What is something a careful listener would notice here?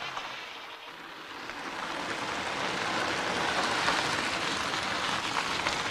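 A car engine hums as a car drives slowly closer.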